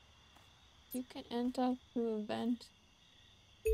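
A young woman speaks briefly and with animation, close to a microphone.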